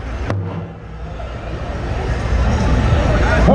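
A group of men sing loudly together.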